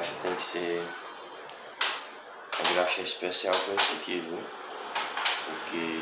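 Metal parts click and clatter in a man's hands.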